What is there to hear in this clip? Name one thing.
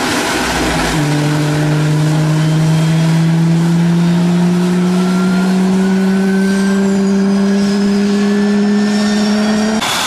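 A jet engine's whine rises slowly in pitch.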